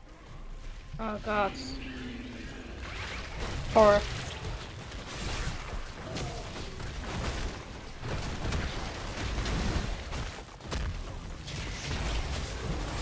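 Game spell effects and blasts crackle and boom during a fight.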